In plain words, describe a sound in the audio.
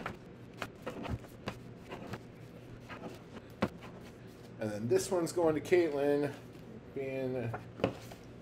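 Paper rustles as a card is handled.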